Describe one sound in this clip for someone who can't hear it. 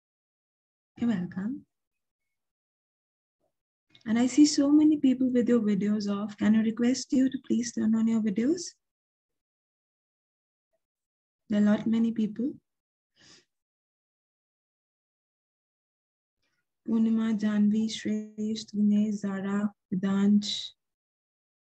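A young woman speaks calmly and closely into a microphone, in short bursts with pauses.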